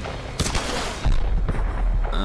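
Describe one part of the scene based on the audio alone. A grenade launcher fires with a deep thump.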